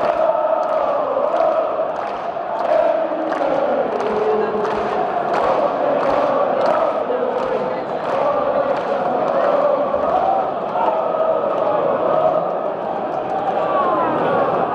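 Fans clap their hands in rhythm.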